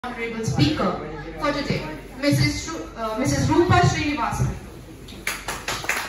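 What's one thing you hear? A woman speaks through a microphone in an echoing hall.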